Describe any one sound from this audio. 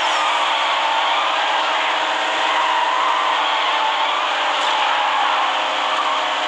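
Tyres screech while a car drifts.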